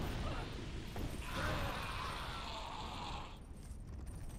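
Fire roars and crackles in a burst.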